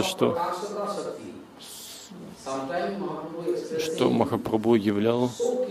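An elderly man speaks calmly and expressively into a nearby microphone.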